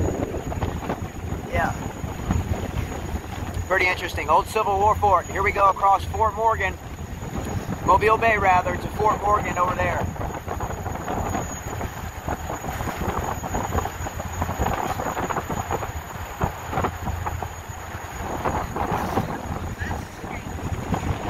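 Wind buffets loudly across open water.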